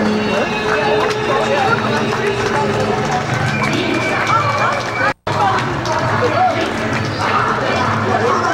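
A crowd of onlookers chatters and calls out nearby outdoors.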